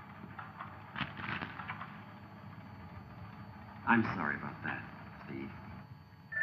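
A man speaks briefly in a low voice.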